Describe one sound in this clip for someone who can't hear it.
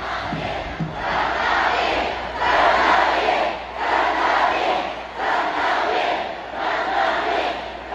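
A crowd claps and chants in rhythm.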